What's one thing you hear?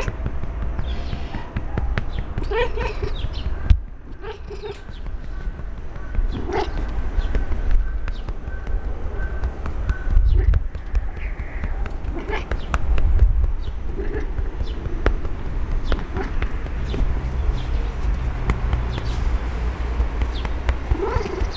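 A hand strokes a cat's fur with a soft rustle.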